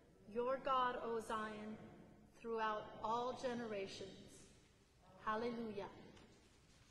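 A woman sings through a microphone in an echoing hall.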